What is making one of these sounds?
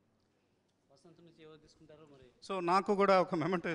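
A man speaks loudly through a microphone and loudspeakers.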